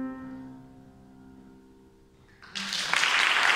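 A piano plays along.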